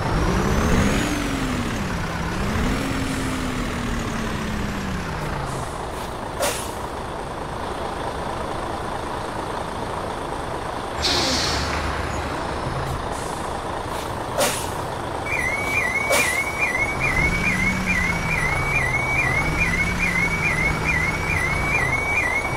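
A truck engine rumbles and revs up and down.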